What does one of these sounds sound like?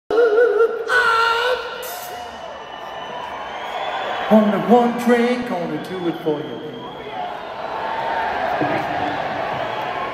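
A man sings through loudspeakers in a large echoing arena.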